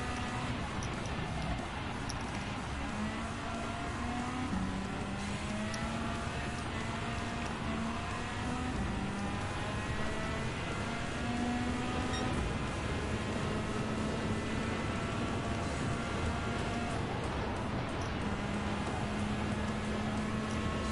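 A racing car engine revs high and shifts up through the gears.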